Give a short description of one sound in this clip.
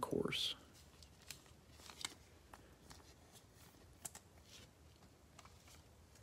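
A plastic card sleeve crinkles as a card slides out of it.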